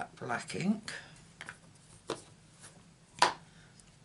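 A plastic ink pad case clicks as it is picked up.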